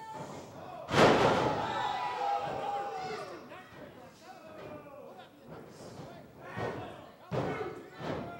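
A crowd cheers and shouts in a hall.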